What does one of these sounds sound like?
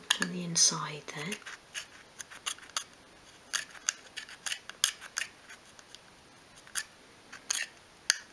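A thin wooden stick taps and scrapes lightly against small pieces of wood.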